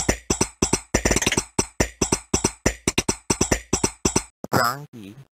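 Fast electronic beats tap out a rhythm.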